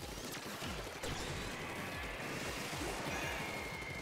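A burst sounds with a splashing whoosh.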